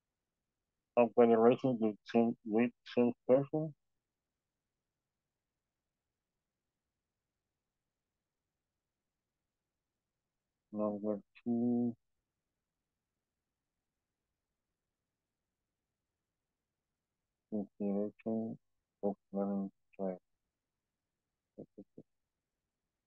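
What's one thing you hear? A young man speaks calmly over an online call, in short bursts with pauses.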